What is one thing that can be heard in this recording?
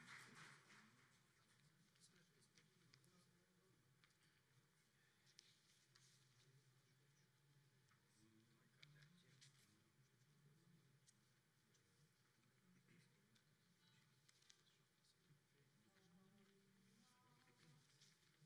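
A men's choir sings softly in a large hall.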